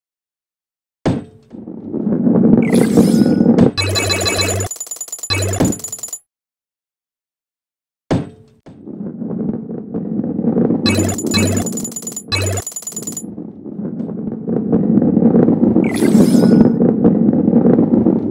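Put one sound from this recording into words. A ball rolls and rumbles along a wooden track.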